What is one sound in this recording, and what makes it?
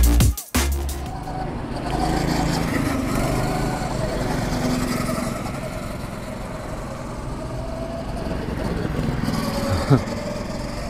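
Go-kart engines whine and buzz as karts race around a track.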